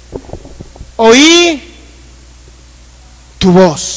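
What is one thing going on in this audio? A man sings loud, drawn-out notes through a microphone and loudspeakers.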